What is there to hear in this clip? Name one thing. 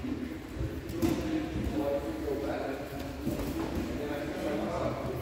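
Bodies thud and shuffle on padded mats in a large echoing hall.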